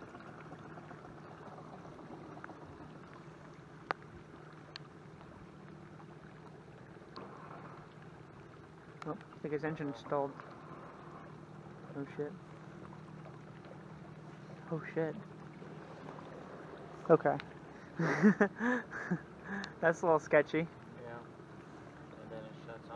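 Water rushes and splashes against a boat's hull.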